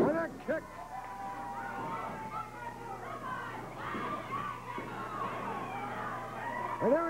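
A crowd shouts and cheers throughout.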